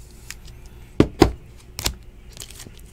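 Cards tap and click against a table.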